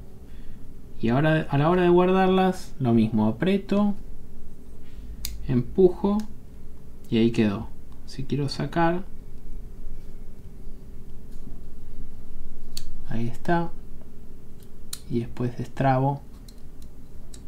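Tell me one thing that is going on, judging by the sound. A metal folding tool clicks as its parts are opened and closed.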